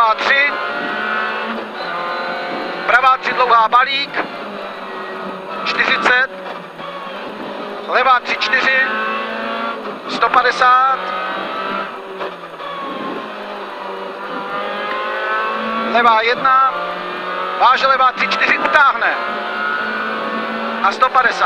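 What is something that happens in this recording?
A man reads out notes quickly over a helmet intercom.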